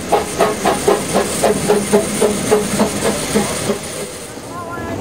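A steam locomotive chuffs rhythmically.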